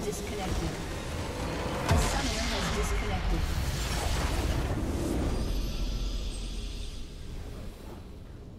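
Game spell effects crash and burst loudly.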